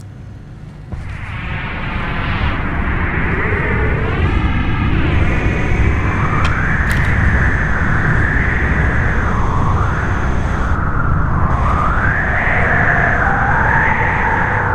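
Wind howls and whistles outdoors, rising and falling in pitch.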